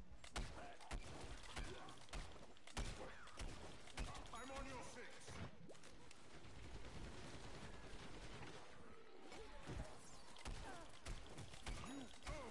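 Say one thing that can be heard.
Fiery bursts from a video game explode.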